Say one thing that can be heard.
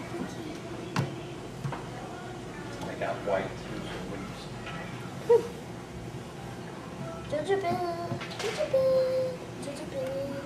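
A baby slaps a wooden cabinet with small hands.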